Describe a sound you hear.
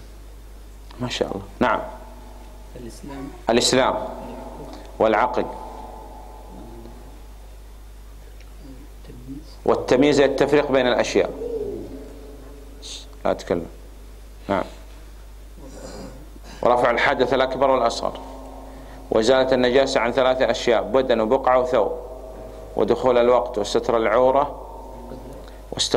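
A man speaks calmly into a microphone in a large echoing hall, with pauses.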